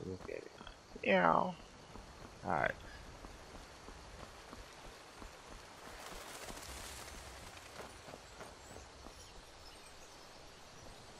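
Footsteps tread on stone and then on a dirt path.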